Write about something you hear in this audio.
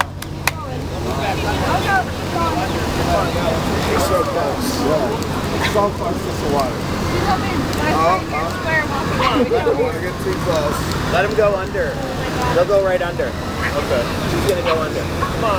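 Ducklings peep busily and continuously close by.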